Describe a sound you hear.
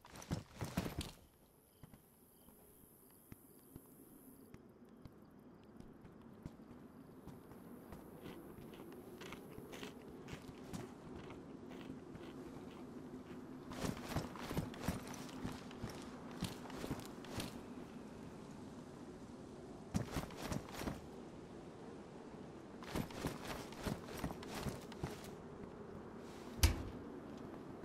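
Gear clatters and rustles in short bursts.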